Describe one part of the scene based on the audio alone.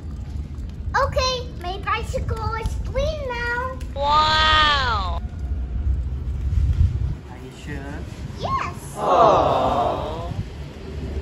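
A young boy talks and calls out excitedly nearby.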